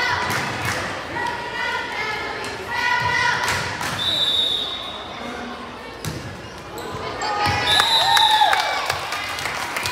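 A volleyball is hit with sharp thumps.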